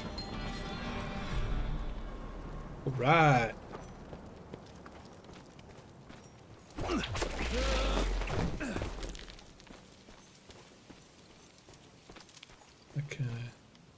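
Footsteps crunch on dry dirt and gravel.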